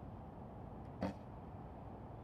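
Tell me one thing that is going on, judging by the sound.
A bowstring snaps as an arrow is released.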